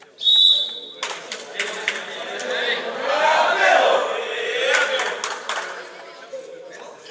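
A group of young men cheer and shout loudly together.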